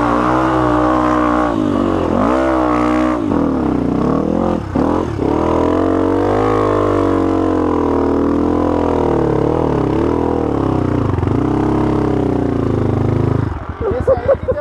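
A dirt bike engine revs and growls up close.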